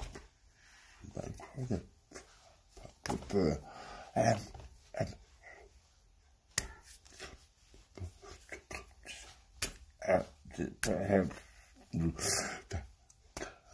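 An elderly man speaks with animation close to the microphone.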